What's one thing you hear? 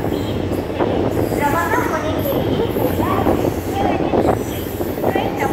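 Passenger coach wheels rumble on the rails as a train rolls slowly.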